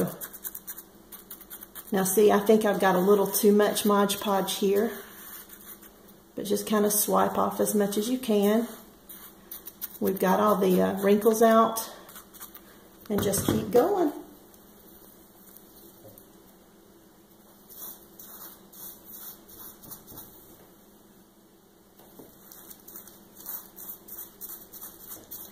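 A foam brush dabs and brushes softly against fabric.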